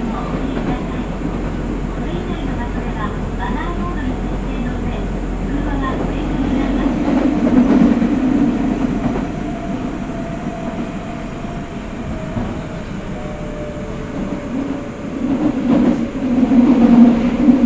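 A stopped train's motor hums steadily.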